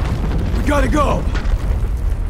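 A young man says something urgently, close by.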